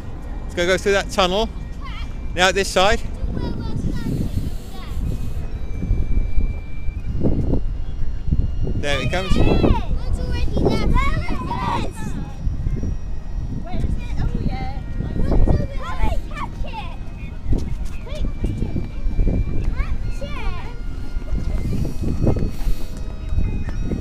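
Children talk and call out excitedly nearby.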